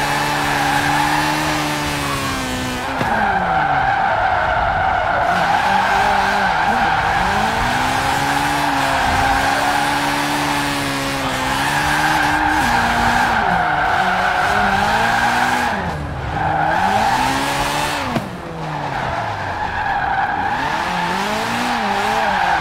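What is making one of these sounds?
A car engine revs high and drops as gears change.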